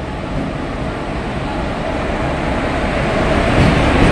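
Train wheels clatter on the rails as the train rolls past.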